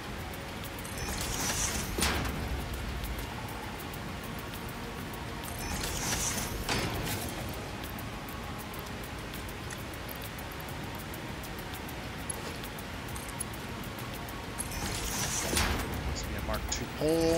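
A machine part snaps into place with a rushing whoosh.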